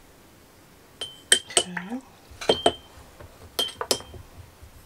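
A small jar clinks and knocks on a hard surface.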